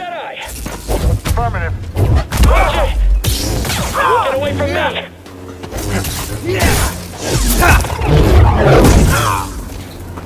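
Blades clash with sharp crackling hits.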